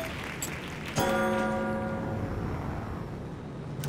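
A bright game chime rings out.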